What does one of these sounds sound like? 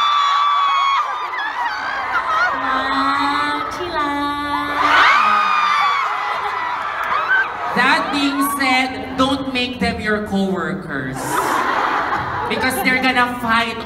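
A young woman speaks with animation into a microphone, heard through loudspeakers in a large hall.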